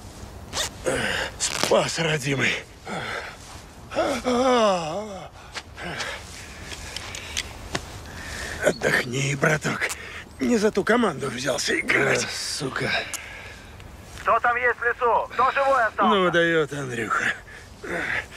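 A man groans and moans in pain close by.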